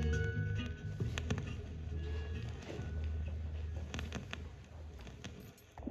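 A needle crackles and pops on a record.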